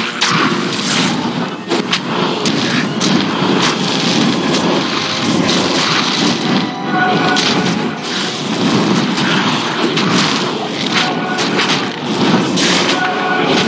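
Fiery spells burst with loud crackling blasts.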